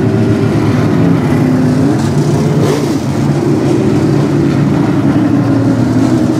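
Several race car engines roar loudly together.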